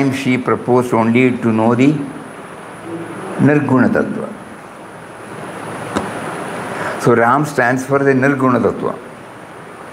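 An older man speaks calmly into a close microphone, in short bursts with pauses.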